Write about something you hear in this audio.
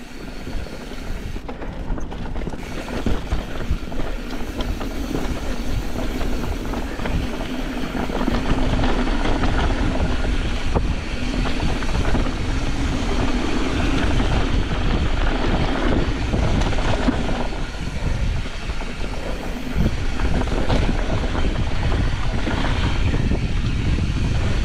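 Bicycle tyres roll and crunch over a dry dirt trail.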